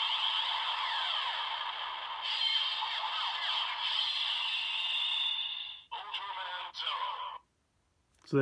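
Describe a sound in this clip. A toy plays electronic sound effects through a small speaker.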